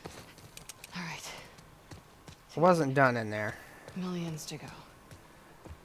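A woman speaks calmly in a low voice, close by.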